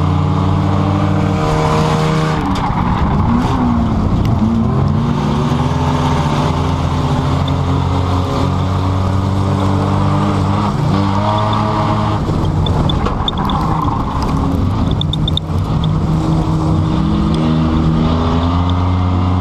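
A car engine hums from inside the car, its pitch rising and falling.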